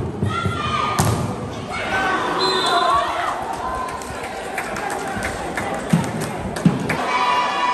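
A volleyball is struck by hand during a rally.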